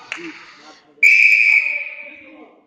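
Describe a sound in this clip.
A referee's whistle blows a sharp blast.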